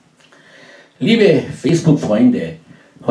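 A man speaks loudly and close into a microphone.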